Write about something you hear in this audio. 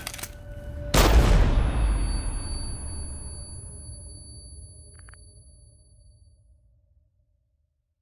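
A pistol fires a single loud shot that echoes and slowly fades.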